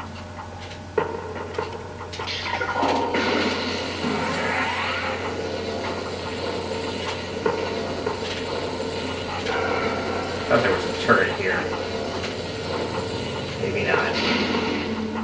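An arm cannon in a video game fires with a loud blast.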